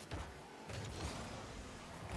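A ball is struck with a hard thump.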